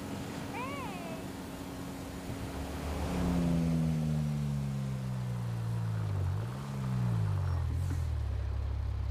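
A car engine winds down as the car slows to a stop.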